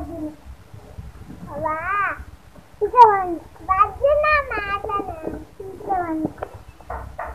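A young girl talks and squeals playfully close by.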